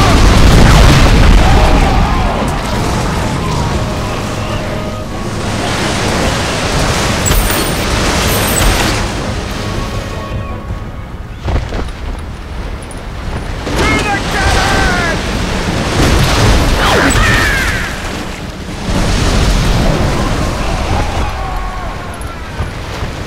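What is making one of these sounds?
Cannons fire in loud, booming volleys.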